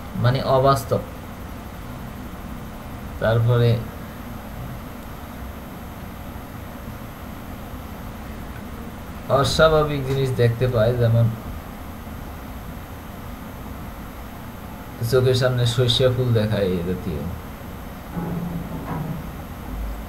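A man speaks close to a microphone in short, calm bursts with long pauses.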